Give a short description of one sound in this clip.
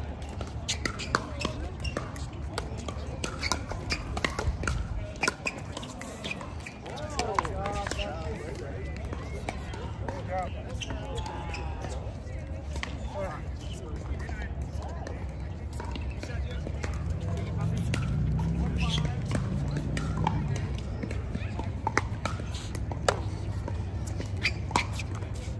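Paddles sharply pop a plastic ball back and forth.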